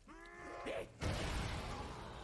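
An energy weapon fires with a loud crackling blast.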